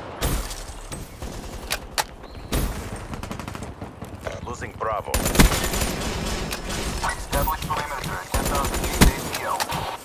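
Gunshots from a video game ring out.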